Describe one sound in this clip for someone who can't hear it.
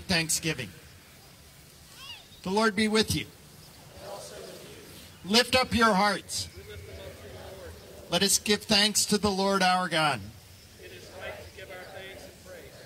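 A man chants and speaks in measured phrases through a microphone outdoors.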